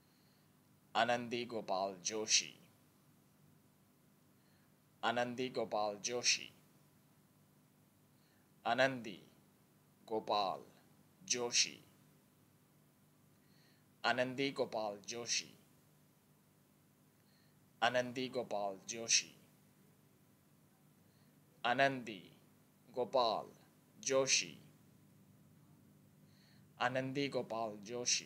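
A young man speaks close into a microphone, in short bursts with pauses.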